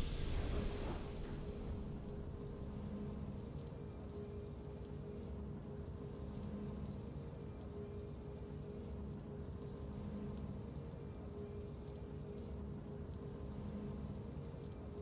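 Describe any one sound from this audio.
Soft triumphant game music plays.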